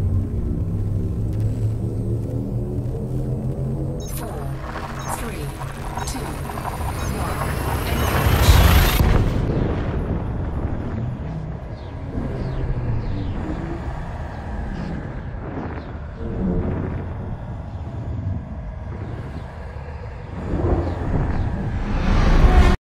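A spaceship engine hums with a low, steady drone.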